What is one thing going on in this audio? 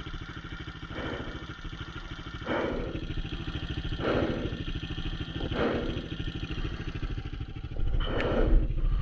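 A dirt bike engine idles nearby and revs in short bursts.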